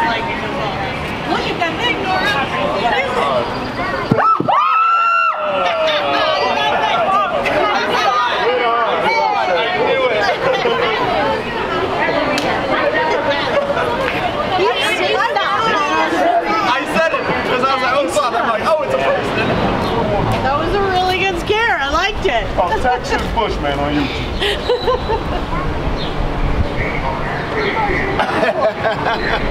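Several men and women talk and laugh nearby outdoors.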